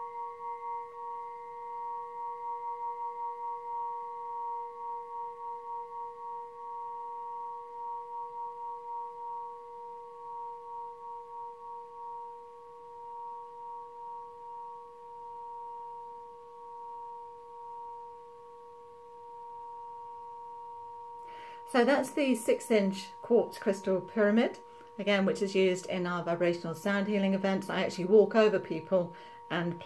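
A glass triangle rings with a steady, pure tone that slowly fades.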